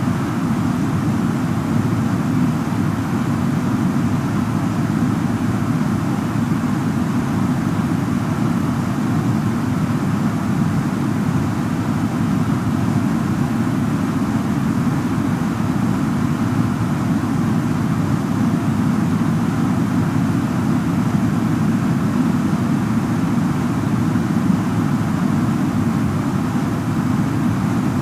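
Jet engines roar with a steady, muffled drone.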